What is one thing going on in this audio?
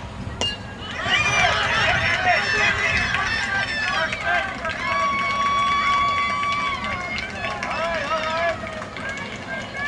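A crowd of spectators cheers and shouts nearby, outdoors.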